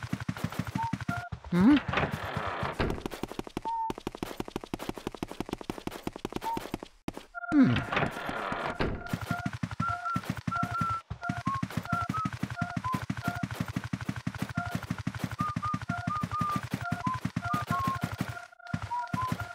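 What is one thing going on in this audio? Quick footsteps patter steadily across a floor.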